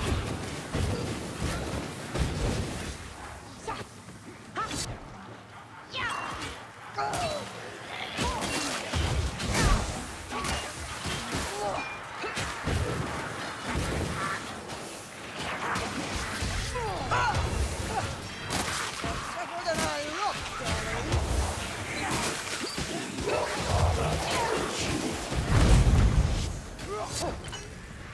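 Weapons hack and thud into creatures in quick, repeated blows.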